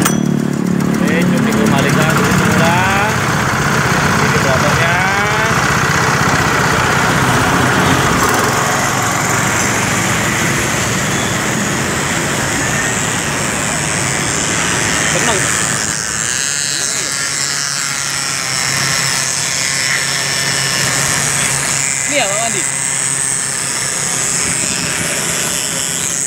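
A small petrol engine runs loudly and steadily close by.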